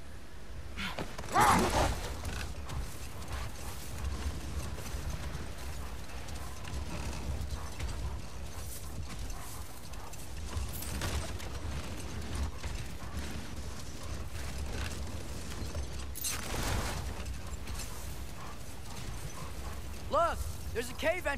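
A heavy sled scrapes and drags over snow.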